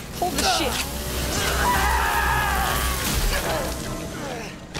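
A woman screams loudly and shrilly.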